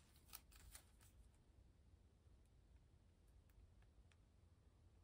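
Tweezers tap and rustle softly against a sheet of paper stickers.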